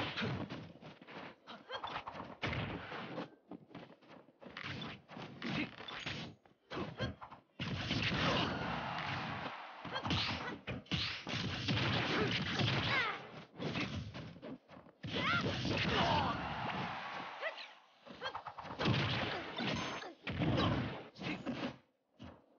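Video game fighters trade sharp hits and blasts.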